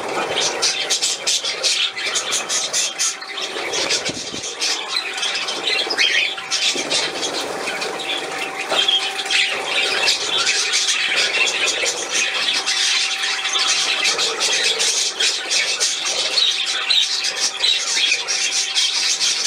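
A small fountain bubbles and splashes steadily into a bowl of water.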